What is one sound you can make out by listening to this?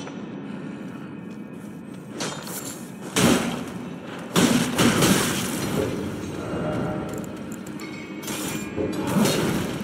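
A character's footsteps thud on a stone floor.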